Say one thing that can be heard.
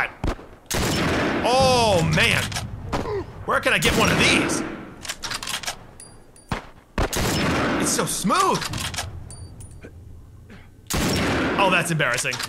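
A man talks excitedly into a close microphone.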